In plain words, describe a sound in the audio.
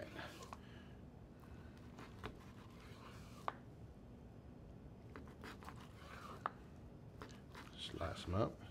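A knife cuts through meat and knocks against a wooden board.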